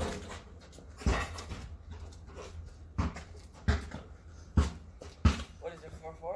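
A basketball bounces on pavement with sharp thuds.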